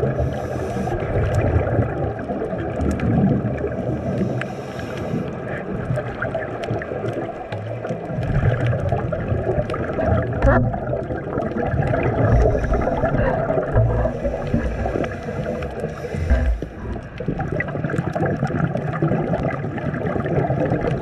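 Water rumbles and hisses in a low, muffled drone, as heard underwater.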